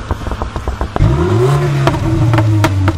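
A car engine revs up sharply and settles at a high idle.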